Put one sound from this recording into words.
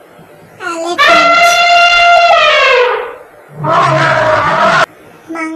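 An elephant trumpets loudly.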